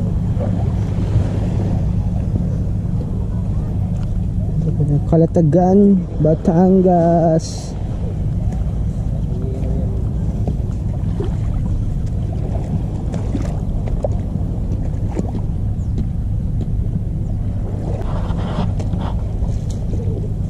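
Small waves lap gently at the water's edge.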